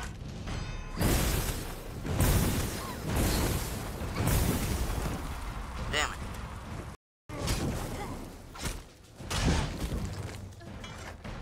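Fire spells burst and crackle in a fight.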